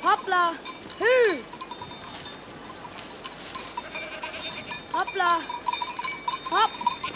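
A child's footsteps swish through tall grass.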